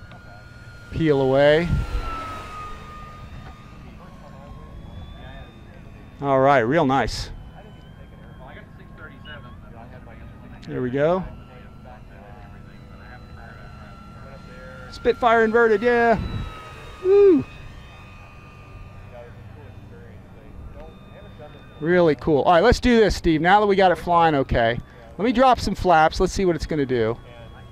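A model plane's motor whines and roars as the plane swoops past again and again, its pitch sliding down each time.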